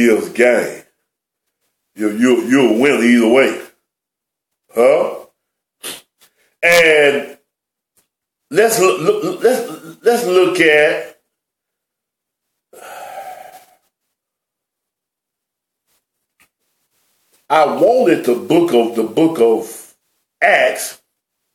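A middle-aged man speaks calmly and deliberately close to a microphone, with pauses.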